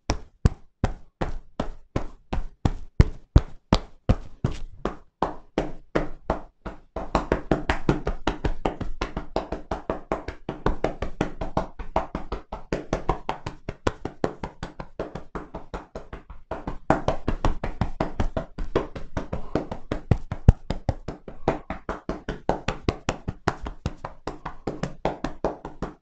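Hands tap and pat rapidly on a person's back and shoulders.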